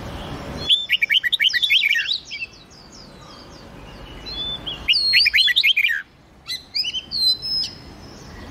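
Songbirds sing rapid, bright whistling phrases up close.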